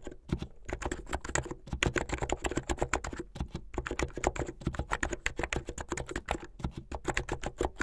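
Keys on a mechanical keyboard clack quickly and steadily as fingers type.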